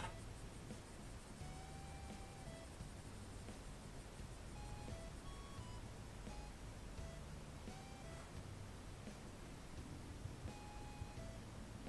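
Soft, plinking game music plays in short, bright notes.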